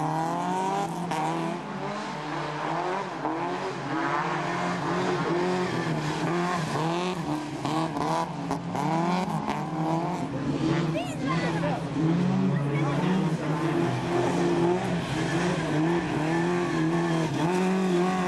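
A rally car engine revs hard, rising and falling.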